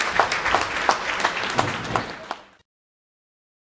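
Fireworks crackle and pop sharply, then stop.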